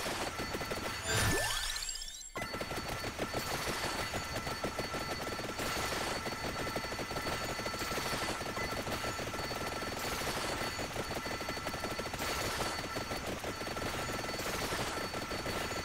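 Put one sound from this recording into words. Rapid electronic hit sounds crackle in a dense, steady stream.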